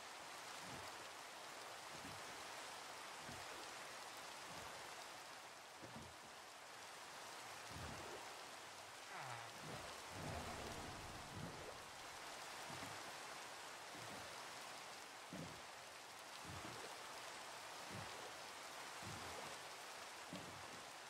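Oars splash rhythmically in the water.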